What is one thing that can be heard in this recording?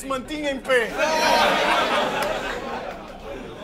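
A crowd cheers and shouts in reaction.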